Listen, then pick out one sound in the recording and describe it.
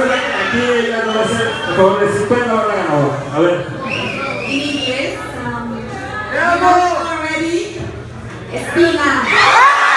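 A young woman speaks through a microphone over loudspeakers.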